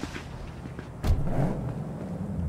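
A car door thumps shut.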